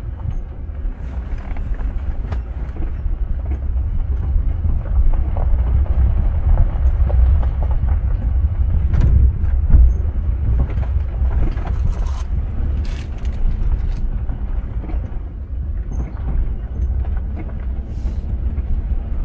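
A vehicle's body rattles and knocks over bumps.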